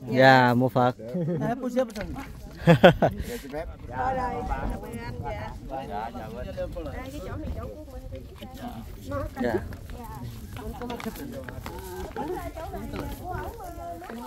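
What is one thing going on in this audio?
A small crowd of men and women talk quietly nearby outdoors.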